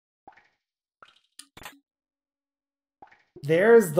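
A short chime plays as an item is picked up in a video game.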